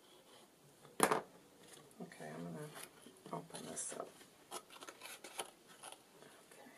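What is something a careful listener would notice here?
Card and paper rustle and knock as they are handled.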